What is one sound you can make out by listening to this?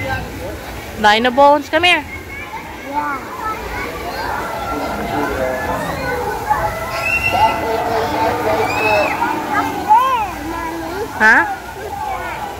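A young boy shouts and squeals excitedly close by.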